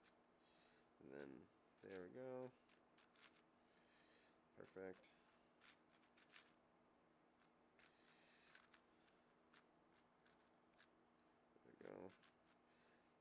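A man makes short vocal sounds close to a microphone.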